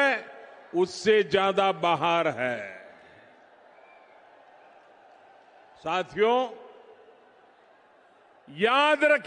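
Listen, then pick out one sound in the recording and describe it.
An elderly man speaks forcefully into a microphone, his voice booming through loudspeakers outdoors.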